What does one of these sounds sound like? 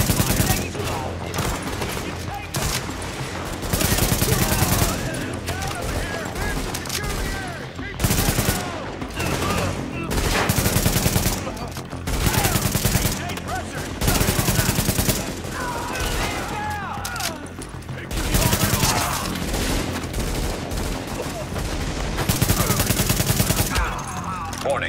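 Automatic gunfire rattles in short, rapid bursts.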